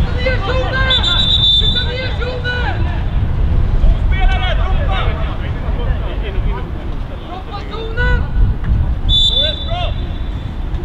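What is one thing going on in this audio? A referee's whistle blows in short blasts.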